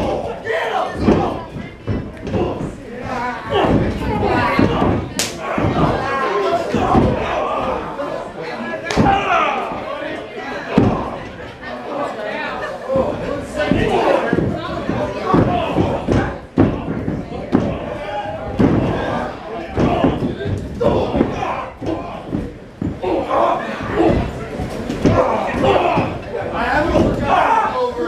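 Wrestlers' bodies thud against the ring ropes and mat.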